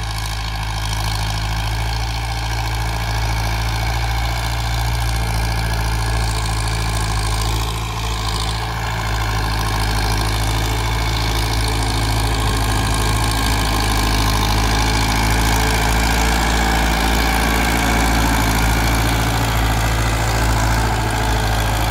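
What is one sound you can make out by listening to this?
A tractor's diesel engine rumbles steadily, growing louder as it approaches.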